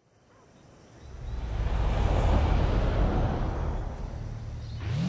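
A car engine roars as the car speeds along.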